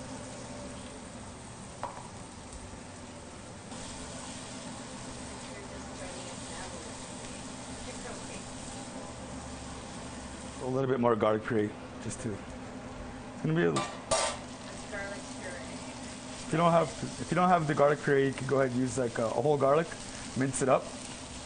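Onions sizzle softly in a hot pan.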